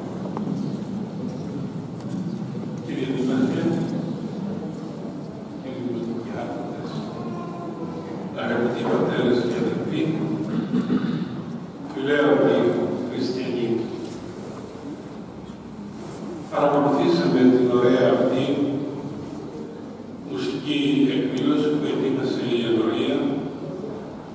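An elderly man speaks calmly into a microphone over loudspeakers in a large echoing hall.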